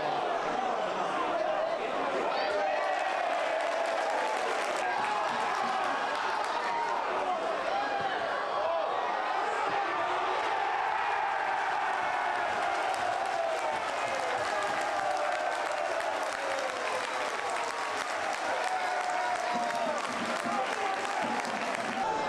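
A crowd of spectators murmurs and cheers outdoors.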